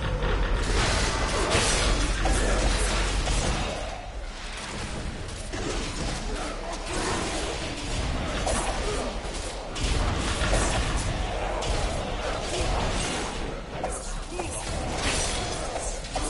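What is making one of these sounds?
Blows and impacts land in quick succession.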